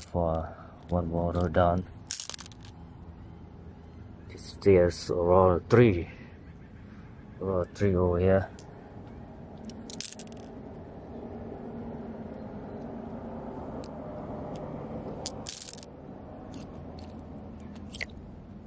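Shallow water trickles and laps gently over stones.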